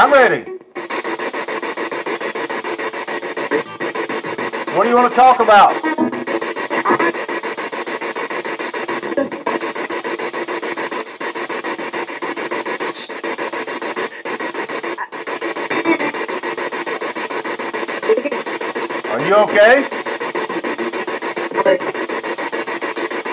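A radio scans rapidly through stations, giving out bursts of static hiss and clipped fragments of voices through a speaker.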